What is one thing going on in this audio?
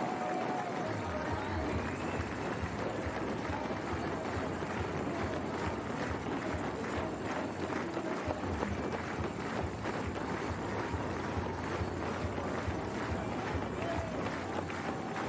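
Many running feet patter on pavement.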